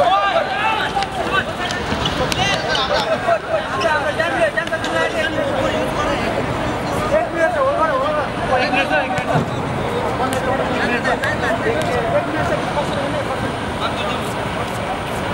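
Young spectators chat loudly close by.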